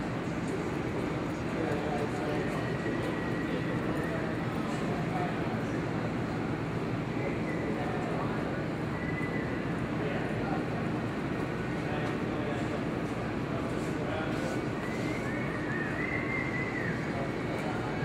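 A horse's hooves thud softly on dirt in a large hall.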